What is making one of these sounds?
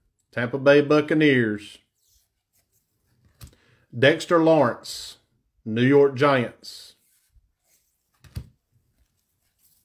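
Trading cards slide against each other in gloved hands.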